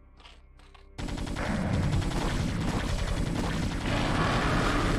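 Rapid gunfire and blasts rattle in a fierce battle.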